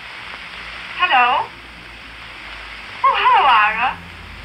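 A young woman speaks cheerfully into a telephone, close by.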